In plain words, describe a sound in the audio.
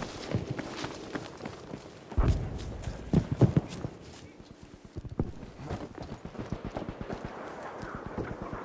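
Footsteps thud on dirt and wooden floorboards.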